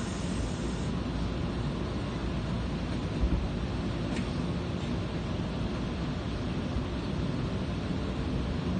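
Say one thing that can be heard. A subway train rumbles steadily along the track.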